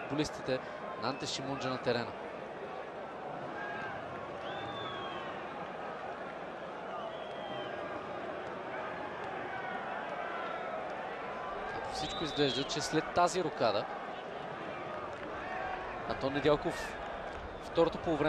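A large stadium crowd chants and cheers steadily.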